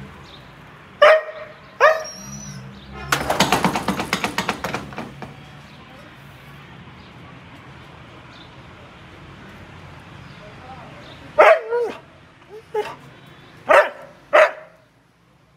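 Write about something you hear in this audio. A dog barks and yelps close by.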